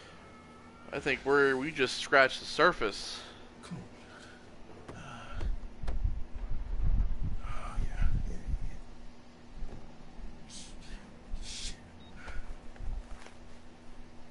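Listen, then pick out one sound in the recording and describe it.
A man groans and mutters in a strained voice, close by.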